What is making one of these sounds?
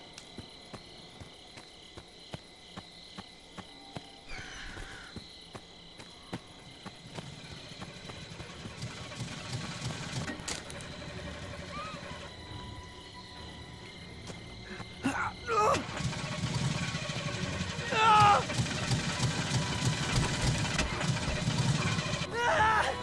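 Bare feet run quickly over a dirt path.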